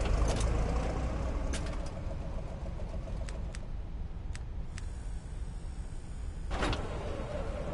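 Short clicks sound as menu items are selected.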